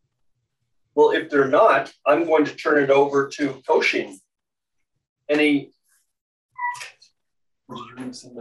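A man speaks with pauses over an online call.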